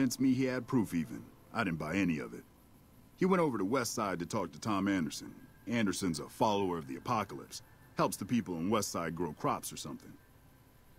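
A young man speaks calmly and conversationally, close by.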